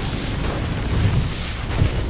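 Electric crackling sizzles.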